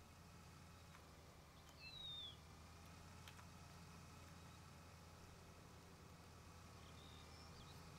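A combine harvester's engine hums low and steady.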